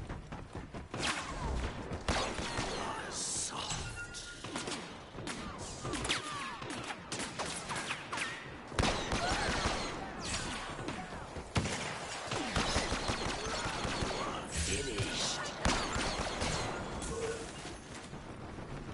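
Blaster shots zap and crackle in bursts.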